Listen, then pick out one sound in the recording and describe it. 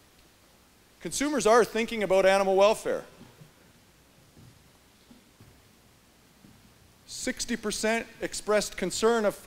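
A middle-aged man speaks through a microphone in a large echoing hall.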